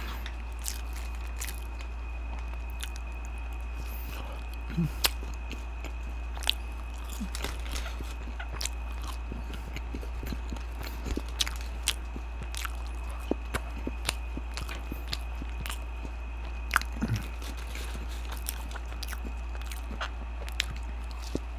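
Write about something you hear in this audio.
Paper wrappers crinkle and rustle close by.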